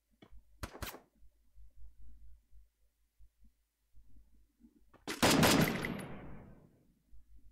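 Gunfire bursts out in a video game.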